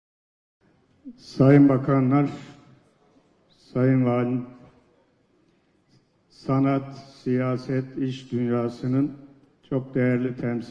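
An elderly man speaks steadily into a microphone over loudspeakers, pausing between phrases.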